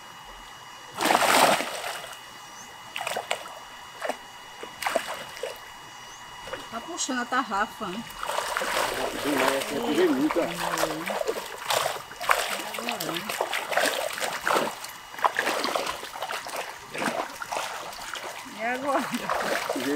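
Water splashes as a man wades through a shallow stream.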